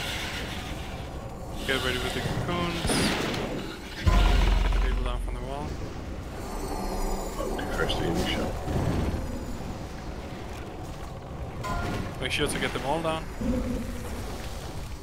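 Spells and weapons clash in a fast, chaotic battle.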